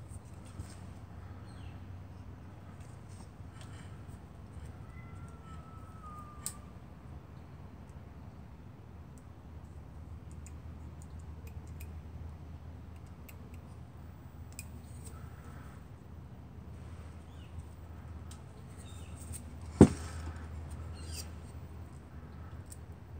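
Metal parts click and rattle as they are handled.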